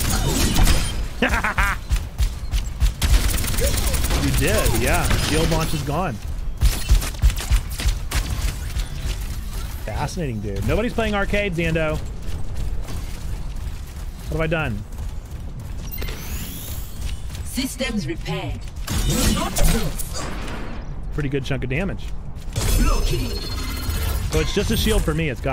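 A man talks into a microphone with animation, close up.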